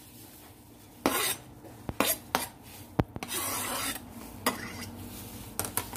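Chopped food is scraped off a board into a bowl with tapping knocks.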